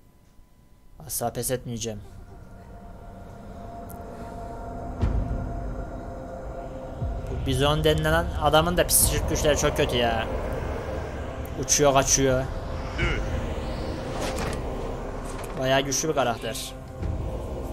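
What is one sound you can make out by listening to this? A young man talks into a headset microphone.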